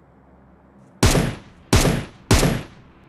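Rifle shots ring out loudly, one after another.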